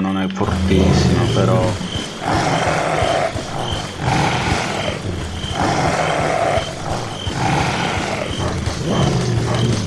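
Footsteps run steadily on hard ground.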